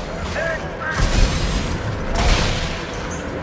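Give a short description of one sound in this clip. A gun fires a fiery, roaring burst.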